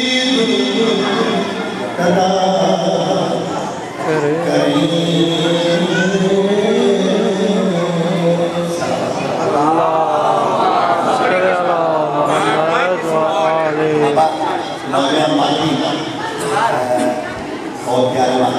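A middle-aged man chants melodically into a microphone, heard through loudspeakers.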